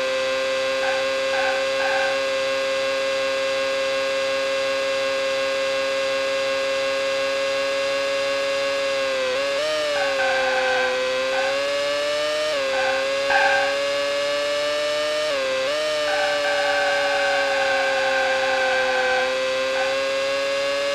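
Tyres squeal in bursts through the corners.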